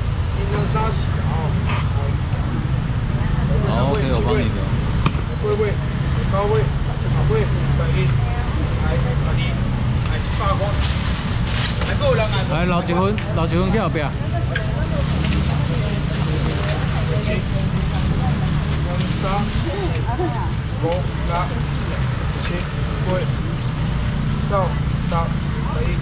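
Many people talk at once in a busy outdoor market.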